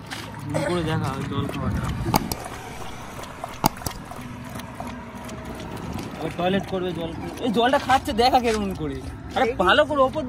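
A dog laps water from a bowl.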